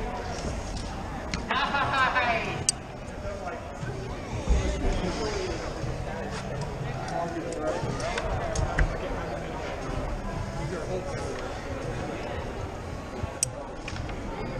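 A metal carabiner clicks as a rope is clipped in.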